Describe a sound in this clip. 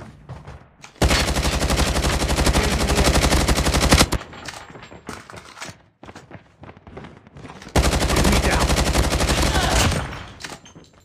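Rapid automatic gunfire rattles loudly in bursts.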